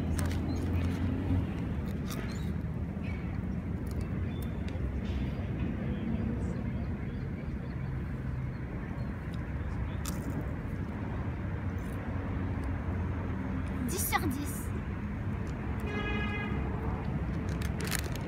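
A candy wrapper crinkles.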